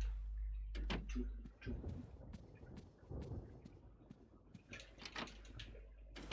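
Footsteps thud steadily along a floor.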